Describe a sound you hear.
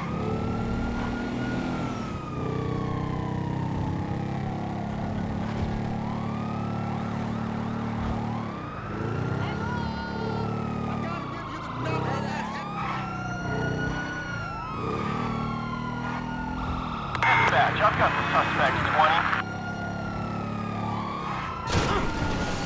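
A motorcycle engine drones steadily as it rides along.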